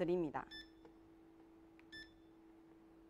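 An electronic button beeps briefly.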